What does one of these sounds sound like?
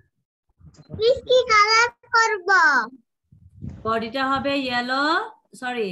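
A young child speaks loudly and expressively through an online call.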